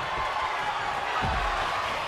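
A wrestler's kick thuds against an opponent.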